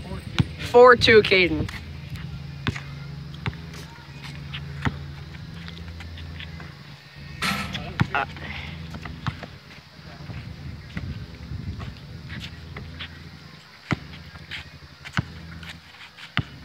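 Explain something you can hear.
A basketball bounces on hard pavement.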